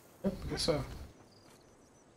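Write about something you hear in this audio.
A heavy thud of someone landing from a jump.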